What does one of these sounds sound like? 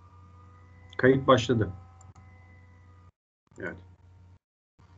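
A man speaks briefly through an online call.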